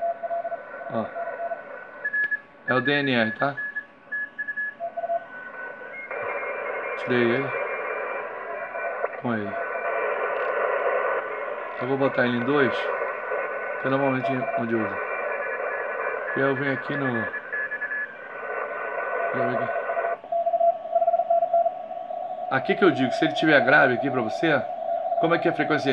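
A radio receiver hisses with static.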